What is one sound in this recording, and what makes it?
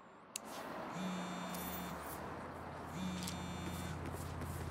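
A phone rings repeatedly.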